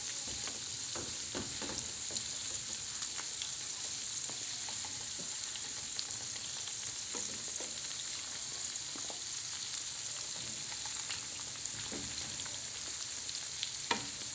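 A wooden spatula scrapes and taps against a frying pan.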